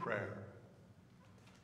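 An elderly man speaks calmly through a microphone.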